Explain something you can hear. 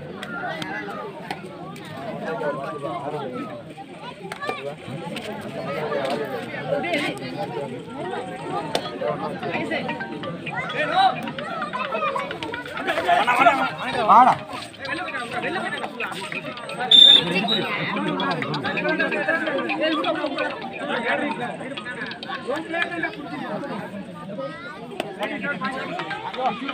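A large crowd of spectators chatters and shouts outdoors.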